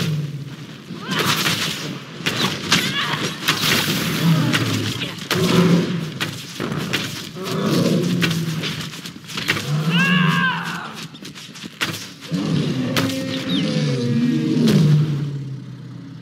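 Magic blasts crackle and thud in a fight.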